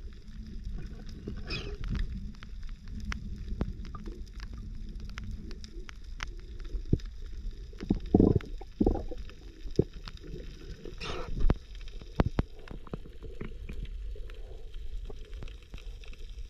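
Water rumbles low and muffled all around underwater.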